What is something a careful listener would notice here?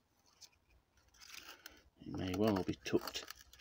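A dry leaf crinkles in fingers.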